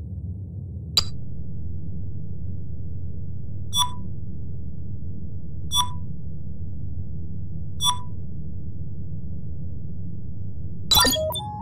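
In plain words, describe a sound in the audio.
Short electronic clicks sound as menu items are selected.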